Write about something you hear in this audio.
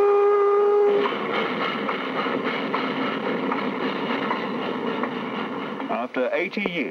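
A steam locomotive chugs and puffs along the track.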